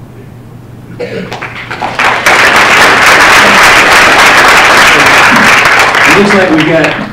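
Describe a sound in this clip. An audience applauds loudly in a room.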